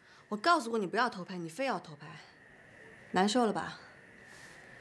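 A young woman speaks firmly and close by.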